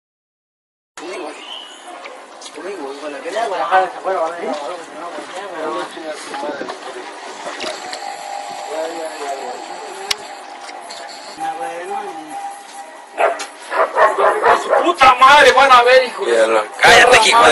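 Several men talk with animation nearby.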